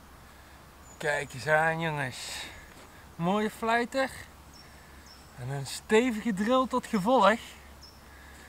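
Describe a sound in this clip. A young man talks calmly and cheerfully, close by.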